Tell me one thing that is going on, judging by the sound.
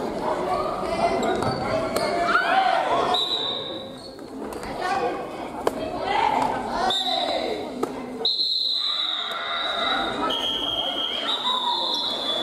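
Many men and women call out and chatter in a large echoing hall.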